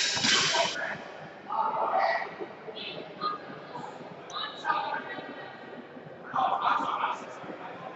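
A young man speaks close by in a large echoing hall.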